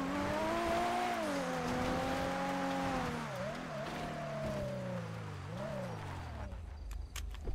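Tyres skid on dirt.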